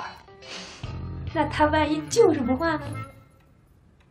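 A young woman speaks playfully.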